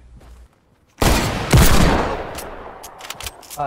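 A gunshot cracks and echoes away.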